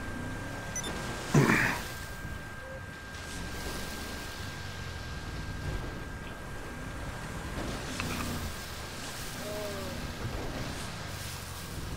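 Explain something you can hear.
A truck engine rumbles steadily as it drives over snow.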